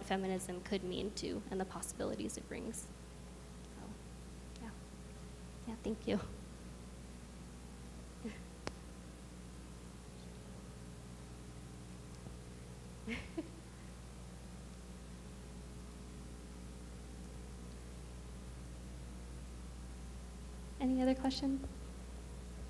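A young woman speaks calmly into a microphone, heard through loudspeakers in a large room.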